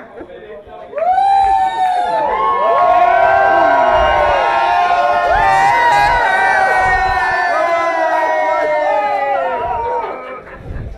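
A large crowd cheers and sings loudly in a big echoing hall.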